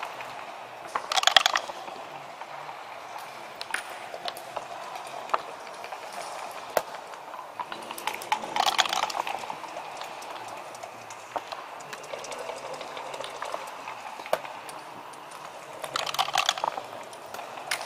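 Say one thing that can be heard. Dice rattle and tumble across a wooden board.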